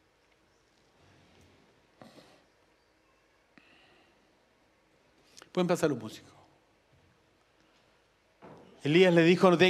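A middle-aged man speaks calmly through a microphone.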